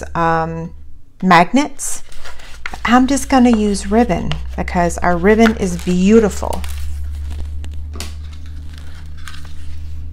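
Hands fold and press a cardstock box.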